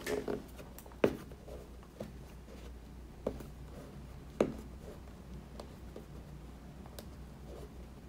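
Fingers tap and rub against a cardboard box.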